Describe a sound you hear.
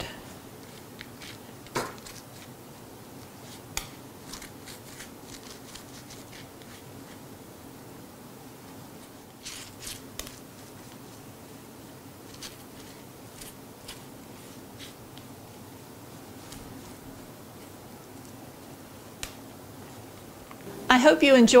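A small tool taps and clicks softly against a cake's decorations.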